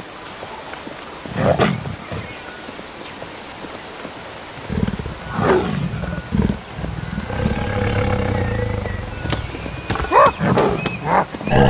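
A waterfall splashes into a pool.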